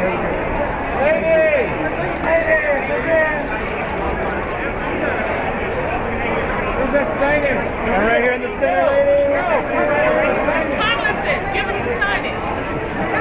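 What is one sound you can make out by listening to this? Men call out loudly from nearby.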